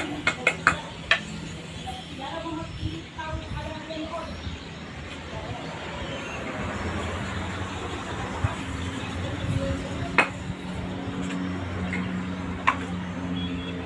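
A trowel taps and scrapes against a cement bucket.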